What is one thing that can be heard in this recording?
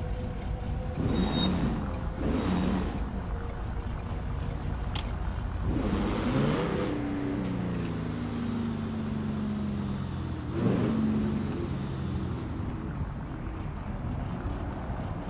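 A car engine hums as a car drives along.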